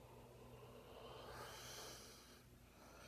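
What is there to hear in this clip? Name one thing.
A man exhales a long, soft breath.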